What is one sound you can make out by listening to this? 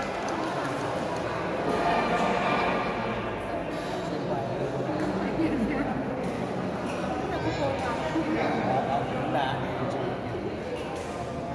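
A crowd of men and women chatters throughout a large echoing hall.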